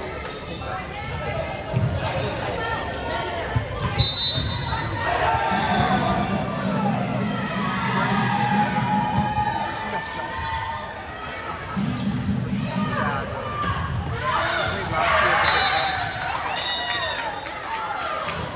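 Young women shout and cheer in a large echoing gym.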